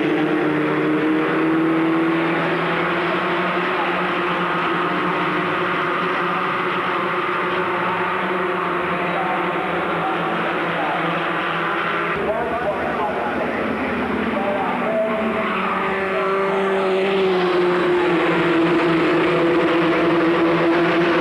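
Racing car engines roar loudly as cars speed past.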